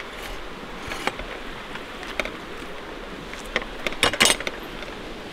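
A wooden gate creaks and clanks shut.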